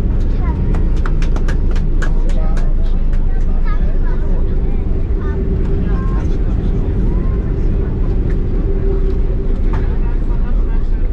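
A jet airliner's engines roar loudly as the plane taxis.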